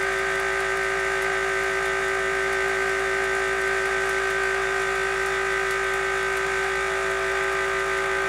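An electrostatic generator hums steadily.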